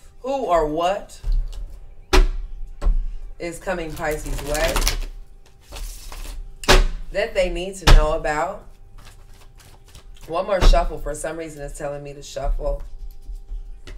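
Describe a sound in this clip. A card pack crinkles and taps in a woman's hands.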